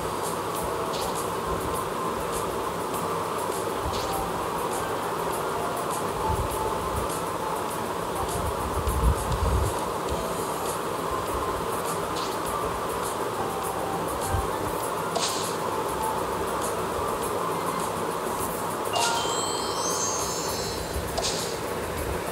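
Short game chimes and sparkling tones ring out now and then.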